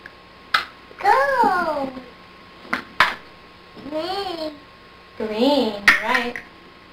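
A toddler babbles and squeals in a high voice close by.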